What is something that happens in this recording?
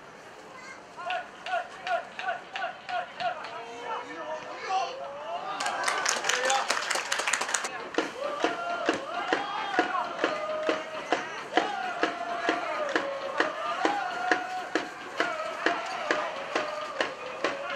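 A crowd of supporters chants in rhythm in an open stadium.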